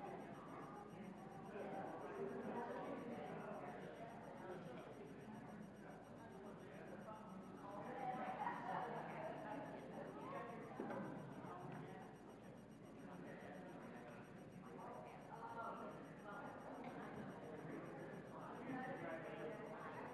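A crowd of men and women chat at a distance in a large echoing hall.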